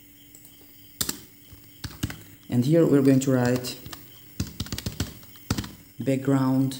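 Keys click on a keyboard as someone types in short bursts.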